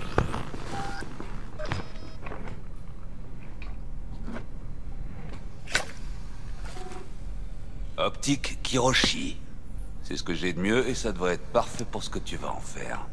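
Metal parts click and clank as a mechanical arm is handled.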